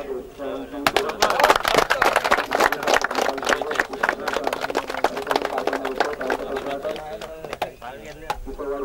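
A crowd of people claps and applauds.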